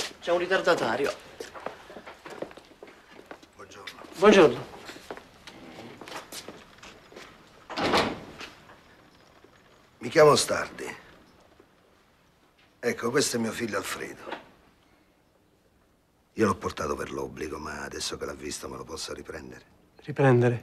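A middle-aged man speaks firmly, close by.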